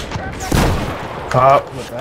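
Rifles fire in short bursts.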